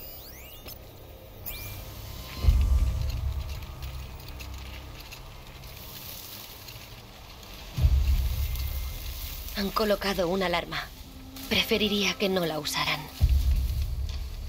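Dry grass rustles as someone creeps through it.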